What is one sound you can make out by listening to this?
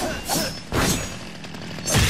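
A blade slashes and clangs in quick strikes.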